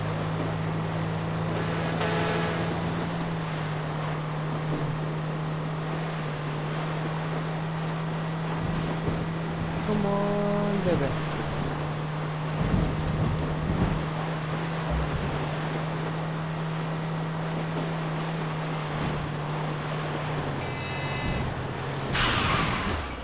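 Tyres roll over a wet road.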